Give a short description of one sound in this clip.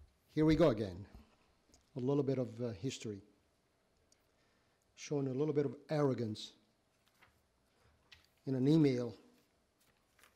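A man speaks in short bursts with pauses, heard through a microphone in a quiet room.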